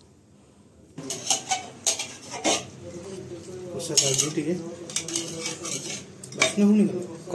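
A spatula scrapes and stirs food in a metal pot.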